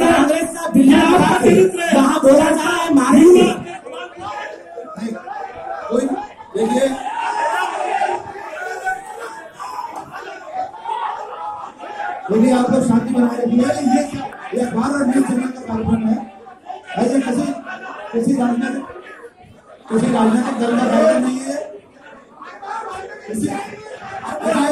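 A crowd of men shout and argue loudly in an echoing hall.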